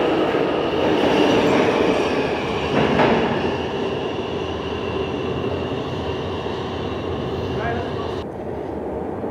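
A subway train rumbles out of an echoing underground station and fades.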